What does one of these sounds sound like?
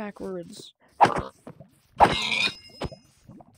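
Sharp blows thump against a pig.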